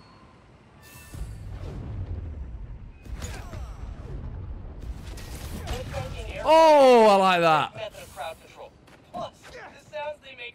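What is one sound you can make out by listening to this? Blows land with dull thuds in a fight.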